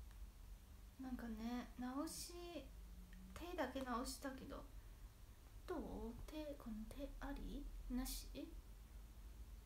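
A young woman speaks softly and expressively close by.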